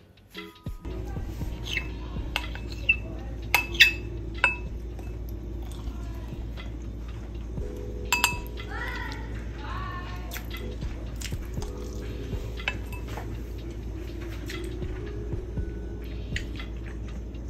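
A metal spoon clinks against a glass bowl while mixing food.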